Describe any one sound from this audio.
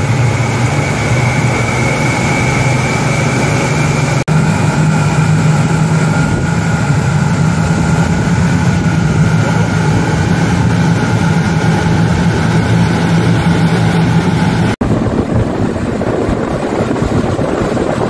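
Wind blows hard past the boat.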